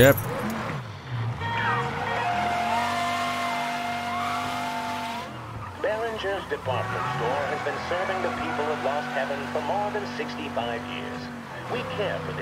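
A car engine hums and revs.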